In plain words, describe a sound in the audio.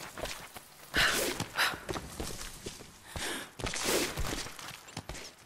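Hands scrape and thud against a stone wall during a climb.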